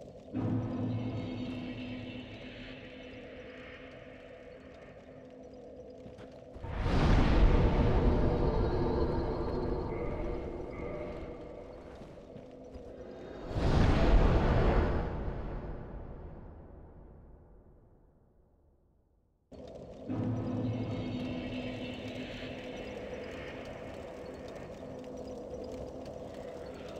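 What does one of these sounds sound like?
A fire crackles softly close by.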